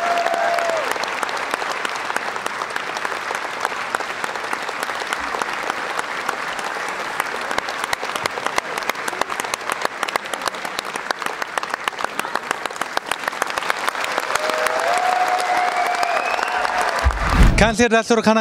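A crowd cheers and claps loudly in a large hall.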